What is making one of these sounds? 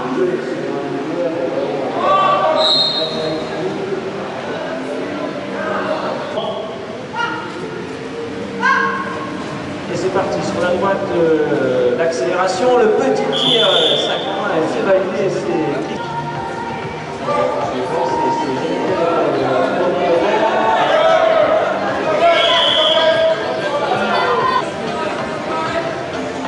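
Young riders shout to each other across an echoing indoor arena.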